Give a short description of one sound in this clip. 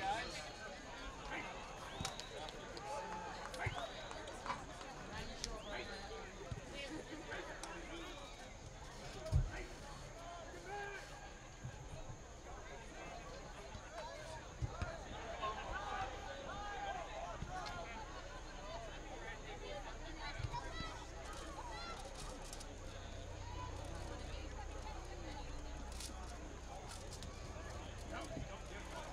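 A crowd of spectators murmurs and calls out from a distance, outdoors.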